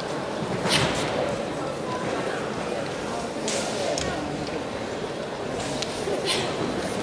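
Karate uniforms snap sharply with quick strikes.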